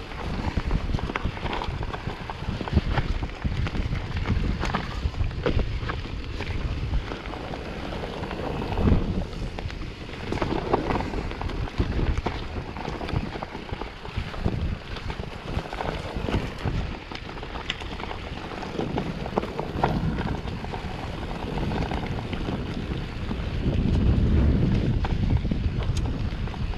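Bicycle tyres crunch and rumble over a bumpy dirt trail.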